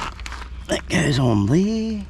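A scraper scratches against plastic.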